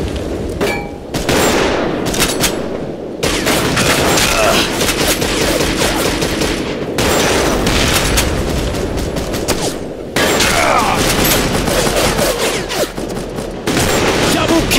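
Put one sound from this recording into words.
A bolt-action sniper rifle fires several shots.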